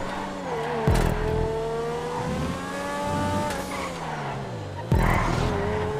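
A car thumps over kerbs.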